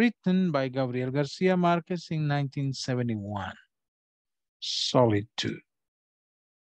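A man speaks calmly through a microphone, as if on an online call.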